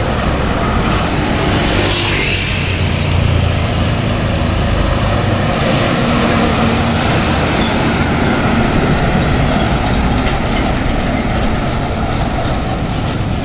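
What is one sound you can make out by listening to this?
Truck tyres roar on the road as trucks pass.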